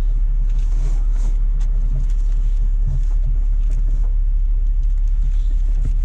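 Cloth rustles as items are moved about.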